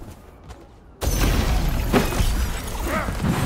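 A magic blast bursts with a loud rumbling boom.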